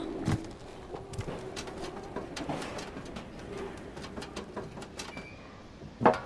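Small paws patter quickly across a tin roof.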